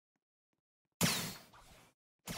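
A crackling magic attack bursts out.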